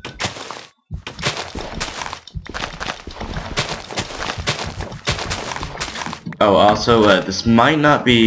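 Plants are broken with short soft crunching sounds.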